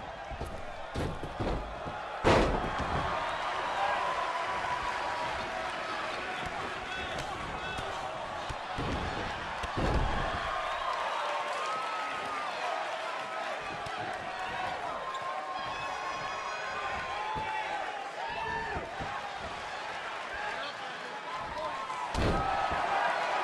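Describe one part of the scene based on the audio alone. Bodies slam heavily onto a wrestling mat with loud thuds.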